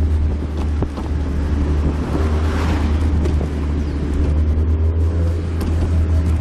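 A car engine rumbles steadily from close by.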